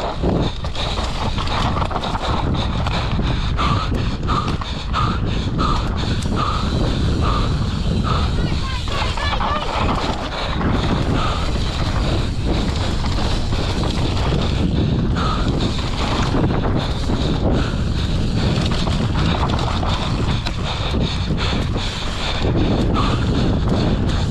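A bike's frame and chain rattle over bumps.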